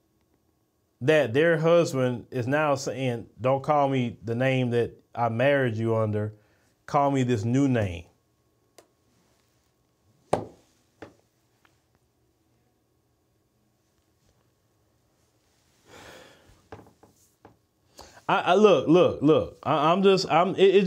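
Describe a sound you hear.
A man speaks with animation into a microphone, with pauses.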